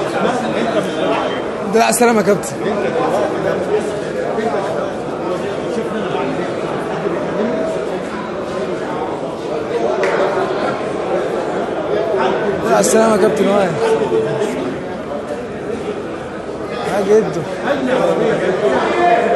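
A crowd of men talks and calls out all around in a large echoing hall.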